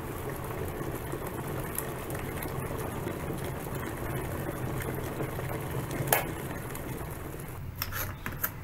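A kettle rumbles as water heats inside.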